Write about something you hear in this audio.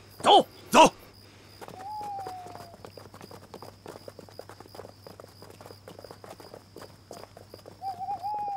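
Footsteps scuffle on a hard path.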